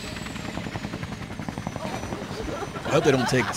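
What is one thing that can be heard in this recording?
A helicopter's rotor chops steadily overhead.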